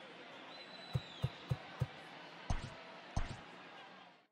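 Short menu clicks sound.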